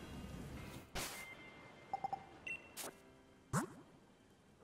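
Short electronic menu beeps and chimes sound.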